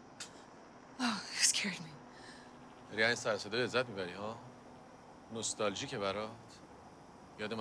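A man speaks quietly nearby.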